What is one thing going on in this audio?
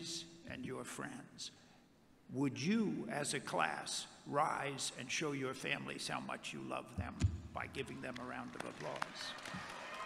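An elderly man speaks into a microphone over loudspeakers in a large echoing hall.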